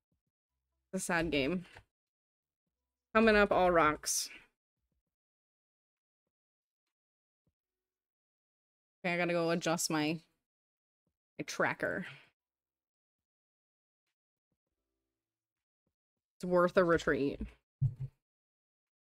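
A woman speaks with animation into a close microphone, in short bursts with pauses.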